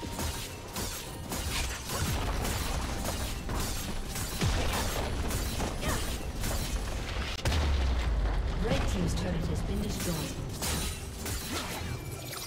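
Fantasy battle effects crackle, whoosh and boom in quick bursts.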